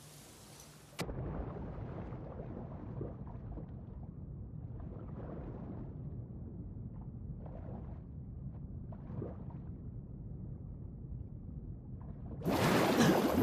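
Muffled underwater rumbling surrounds everything.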